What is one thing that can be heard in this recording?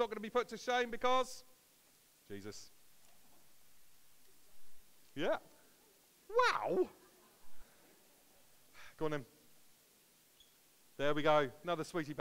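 An older man talks with animation in a large room, in short bursts with pauses between them.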